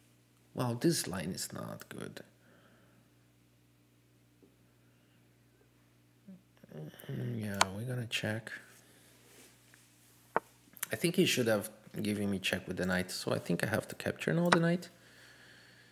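A man talks calmly into a close microphone, explaining in short bursts with pauses.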